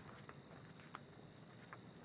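Water drips from a pipe into a bottle.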